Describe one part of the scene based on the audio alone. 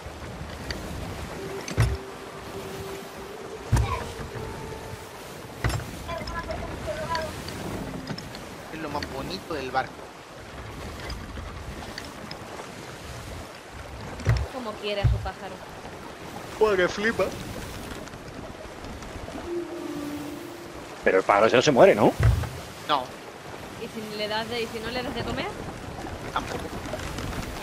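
Waves wash and splash against a wooden ship's hull.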